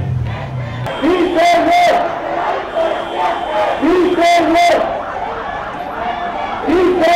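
Loudspeakers blare a voice over a crowd.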